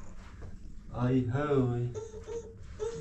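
A young child speaks up close.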